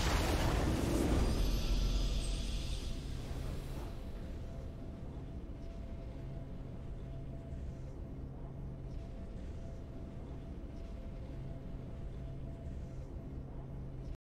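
A triumphant victory fanfare swells and then settles into soft music.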